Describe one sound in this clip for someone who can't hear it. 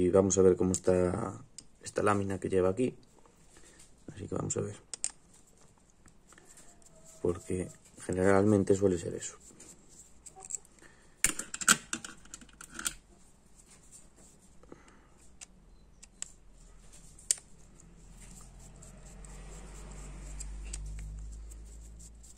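A screwdriver scrapes and clicks against a small metal part.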